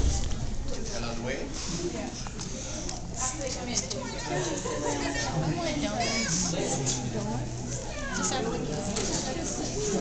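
A crowd of men and women chatter all around in a large room.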